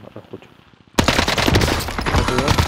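A heavy machine gun fires a rapid, continuous burst close by.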